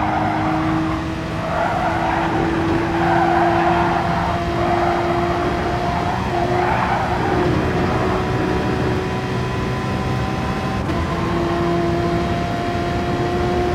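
Tyres hiss and rumble on the track.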